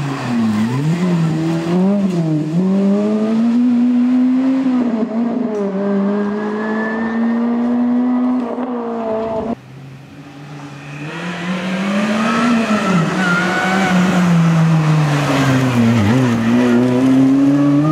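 A rally car engine roars loudly, revving up and down as the car speeds along.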